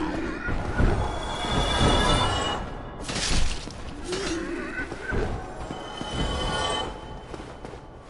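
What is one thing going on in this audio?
Weapons clash and slash in a fierce fight.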